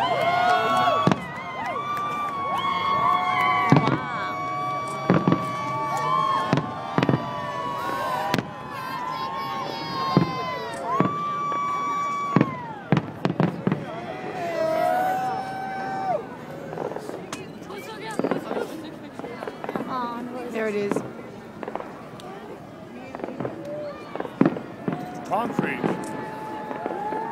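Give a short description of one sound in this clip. Fireworks bang and crackle in the distance.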